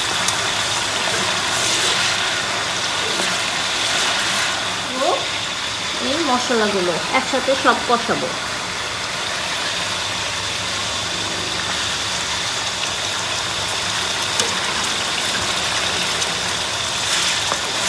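A pot of liquid bubbles steadily.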